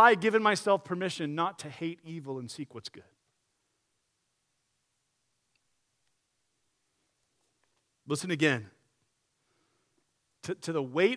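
A man speaks with animation through a microphone, pausing now and then.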